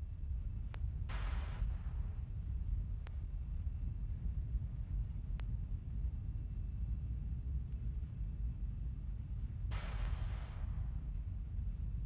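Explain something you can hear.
Gas hisses from a rocket on the pad in short bursts.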